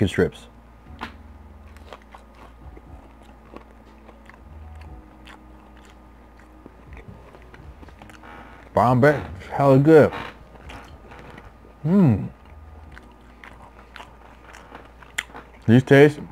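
A man chews and munches on crunchy food close to a microphone.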